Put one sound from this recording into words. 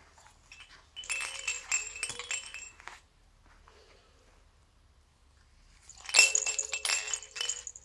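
A baby's toy rattles and jingles.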